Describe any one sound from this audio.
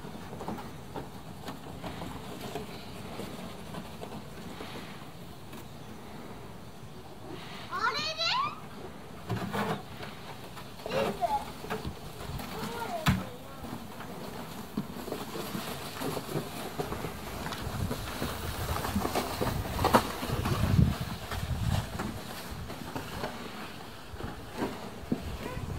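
Plastic sleds scrape and hiss over packed snow.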